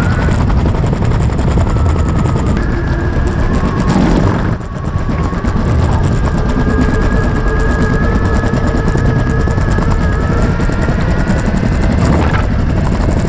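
An electric skateboard motor whines steadily.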